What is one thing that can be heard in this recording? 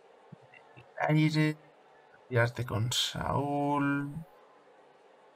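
A young man speaks briefly and with animation, close to a microphone.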